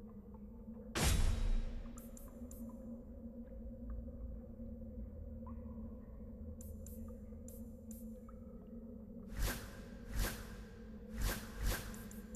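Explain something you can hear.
Short game menu sounds click and swish as selections change.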